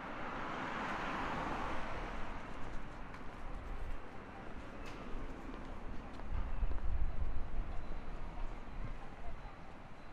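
Traffic hums along a nearby city street.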